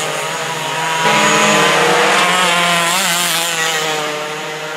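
A second go-kart engine buzzes up close and roars by.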